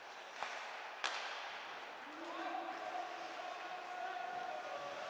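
Skates scrape across the ice in a large echoing arena.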